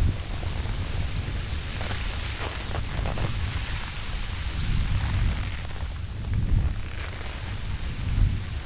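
Loose snow rushes and pours down a steep slope.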